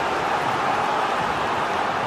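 A football is struck hard.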